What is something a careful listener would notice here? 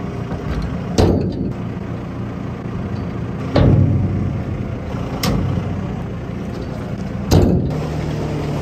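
Heavy rubber boots thud on metal as a person climbs.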